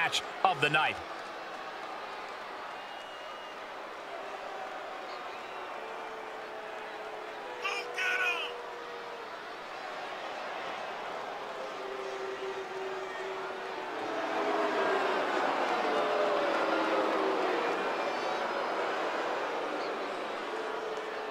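A large crowd cheers and roars in a big echoing arena, swelling louder partway through.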